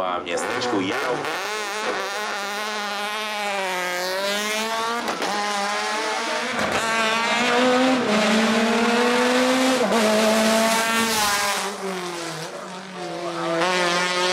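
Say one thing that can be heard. A racing car engine roars loudly as the car accelerates past.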